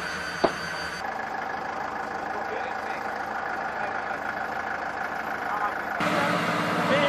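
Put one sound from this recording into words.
A forklift engine idles outdoors.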